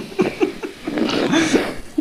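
A young woman slurps a drink.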